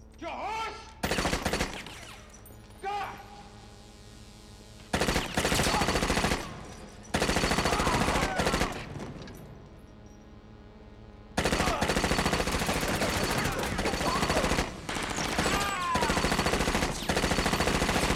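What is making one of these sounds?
Machine guns fire in long, rapid bursts in a large echoing hall.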